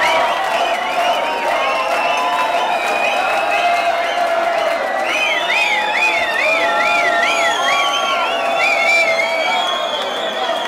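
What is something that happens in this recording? Electronic dance music plays loudly over club loudspeakers.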